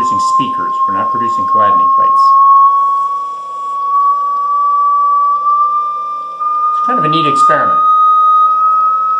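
A steady high tone hums and slowly rises in pitch.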